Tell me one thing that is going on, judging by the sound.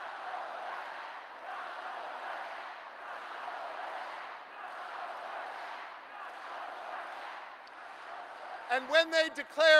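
A large crowd cheers and applauds in a big echoing hall.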